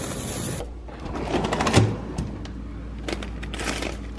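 A freezer drawer slides open.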